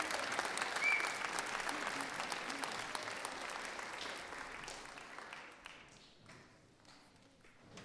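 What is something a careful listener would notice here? An audience applauds in a large hall and the clapping fades.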